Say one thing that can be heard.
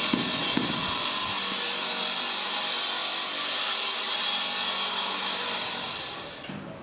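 A power saw whines loudly, cutting through stone.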